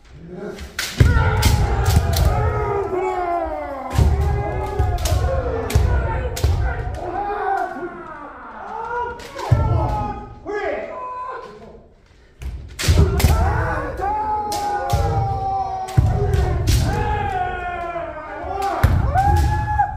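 Bare feet stamp hard on a wooden floor.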